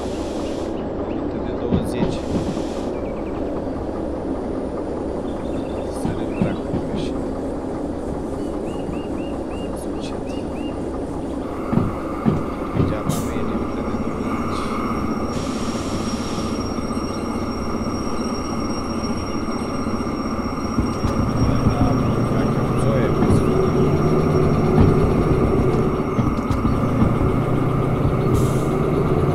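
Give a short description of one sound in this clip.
Train wheels clack and rumble over the rails.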